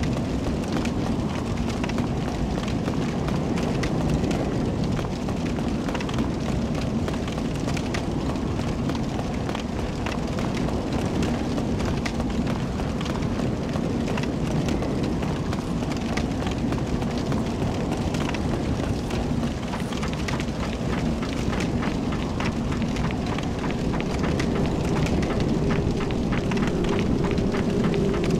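Armoured footsteps clatter quickly on stone steps and floors.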